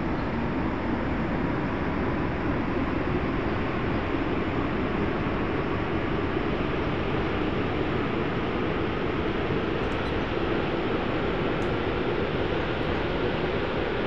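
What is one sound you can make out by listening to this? An aircraft engine roars steadily while the plane rolls down a runway.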